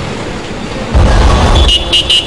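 Heavy traffic rumbles along a busy street.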